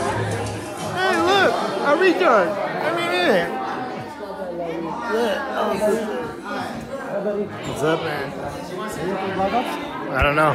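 A crowd of men and women chatter close by in a room.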